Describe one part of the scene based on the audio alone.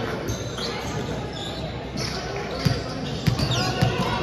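A volleyball bounces on the floor.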